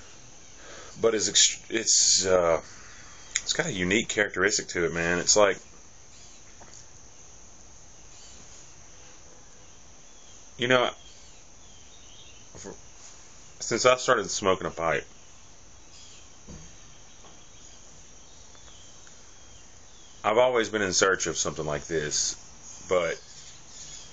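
A man talks casually, close up, in short bursts.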